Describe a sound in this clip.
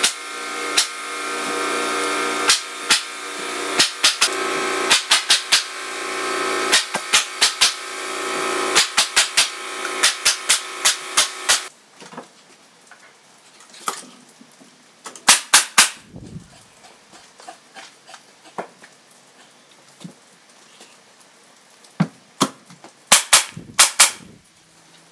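A pneumatic nail gun fires nails in sharp bursts.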